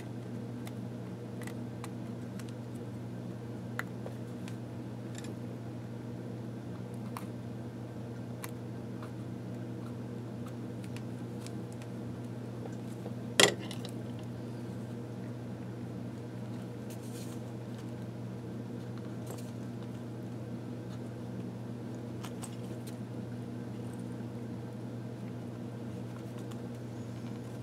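Stiff papers rustle and crinkle in someone's hands.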